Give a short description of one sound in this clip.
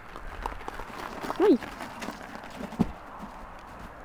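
A bicycle crashes down into soft snow.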